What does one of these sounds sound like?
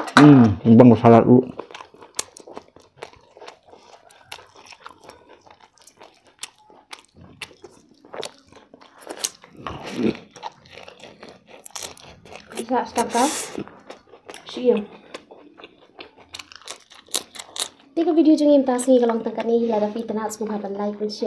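People chew and crunch food with small wet smacks.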